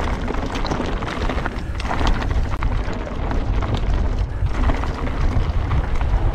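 Wind rushes past loudly outdoors.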